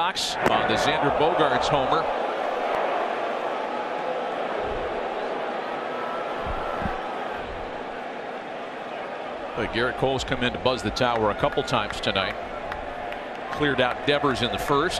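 A large crowd murmurs steadily in a big open stadium.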